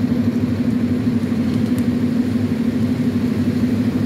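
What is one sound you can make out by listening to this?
Leafy branches rustle as they are dragged across the ground.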